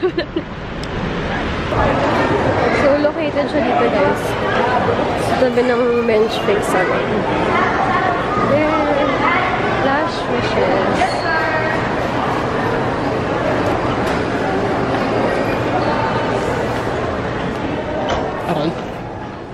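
A young woman talks cheerfully and close to the microphone.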